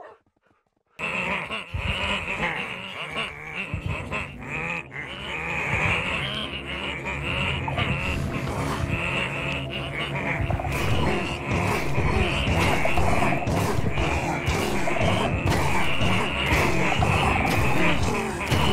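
A crowd of game villagers murmurs and grunts in a dense, overlapping din.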